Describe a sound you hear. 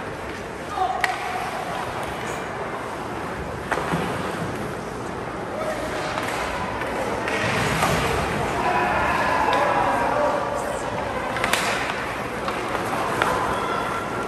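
Hockey sticks clack against the puck with sharp knocks.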